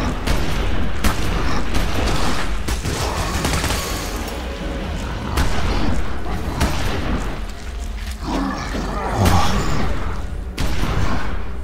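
A creature growls and shrieks.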